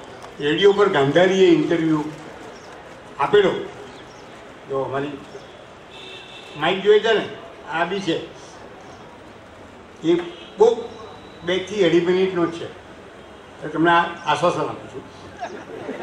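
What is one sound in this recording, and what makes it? An elderly man speaks with animation into a microphone, heard through a loudspeaker outdoors.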